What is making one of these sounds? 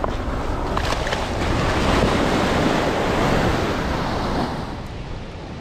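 Waves wash and splash onto the shore close by.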